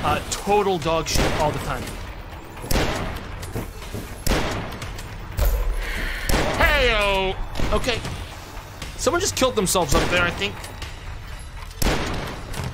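A weapon fires in sharp, repeated blasts.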